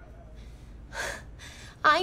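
A young woman laughs briefly.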